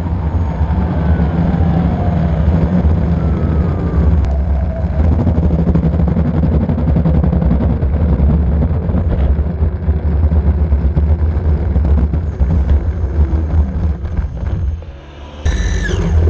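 Skateboard wheels rumble loudly and steadily over rough pavement, close by.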